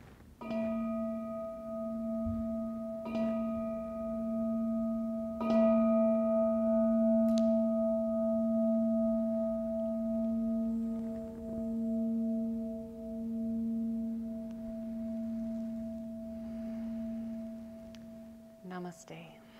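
A singing bowl is struck three times and rings with a long, slowly fading hum.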